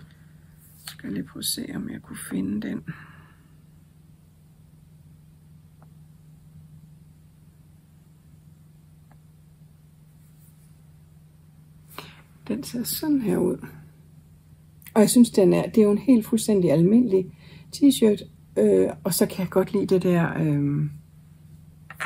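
A middle-aged woman talks calmly and close to a microphone, with pauses.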